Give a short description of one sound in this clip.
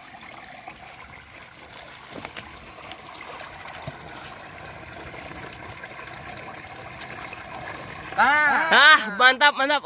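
Water trickles softly through a shallow channel.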